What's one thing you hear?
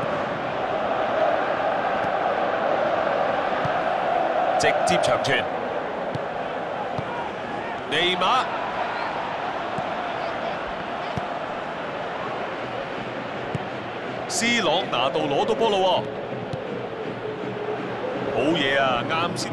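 A stadium crowd roars and chants steadily throughout.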